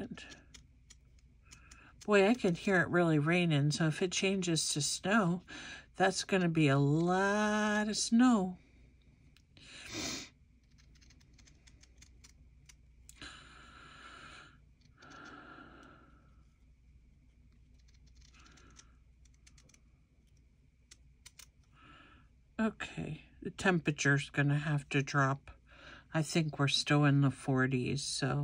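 Small scissors snip through paper.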